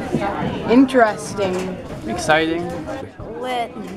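A teenage boy talks excitedly close by.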